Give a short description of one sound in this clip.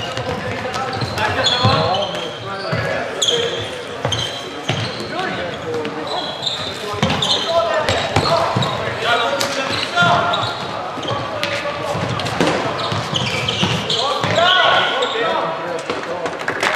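A plastic ball clacks off a stick.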